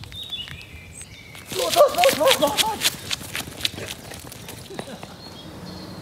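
A man's footsteps run on a paved path.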